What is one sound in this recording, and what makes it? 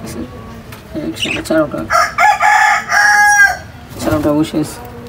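Budgerigars chirp and chatter.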